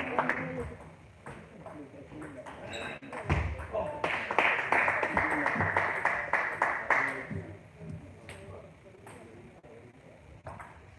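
A ping-pong ball clicks sharply back and forth off paddles and the table in a large echoing hall.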